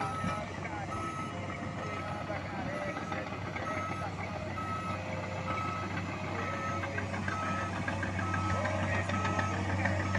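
A bulldozer engine rumbles steadily nearby.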